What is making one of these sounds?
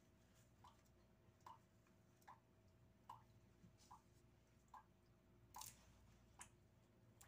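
Leaves rustle softly as fingers sort and pluck them.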